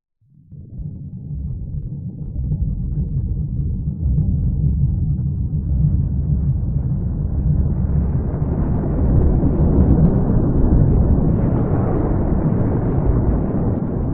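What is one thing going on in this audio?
A deep spaceship engine rumble swells and grows steadily louder.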